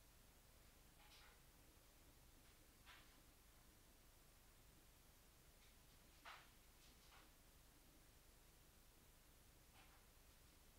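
A man speaks quietly close to a microphone.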